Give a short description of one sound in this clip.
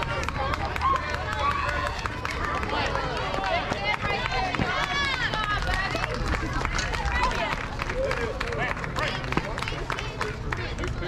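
Young players and adults shout and cheer outdoors.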